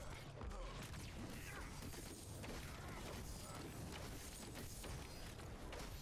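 Blades clash with sharp, quick impacts in a fight.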